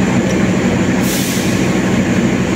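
A train door slides shut with a short hiss of air.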